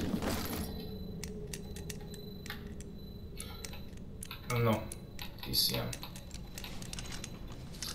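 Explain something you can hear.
A combination lock's dials click as they turn.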